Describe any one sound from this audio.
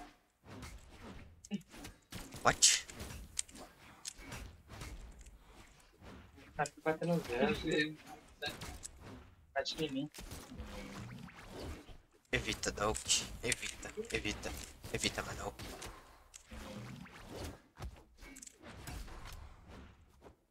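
Cartoon fighters clash with sharp hits and whooshing swipes.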